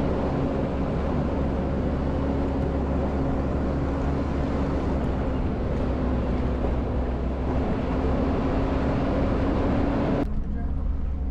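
Tyres crunch over a dirt and gravel track.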